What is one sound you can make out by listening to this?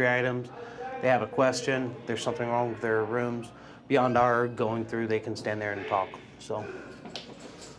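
A man speaks with animation close to a microphone, in a small echoing room.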